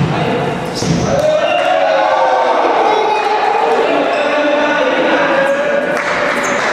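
Young men shout and cheer together.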